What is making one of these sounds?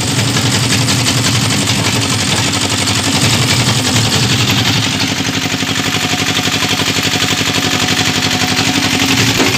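A machine engine runs with a steady, rapid chugging.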